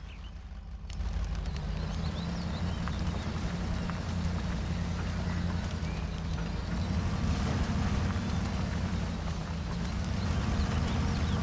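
Tyres crunch over rough ground.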